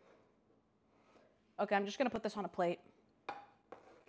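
A metal pan clanks on a counter.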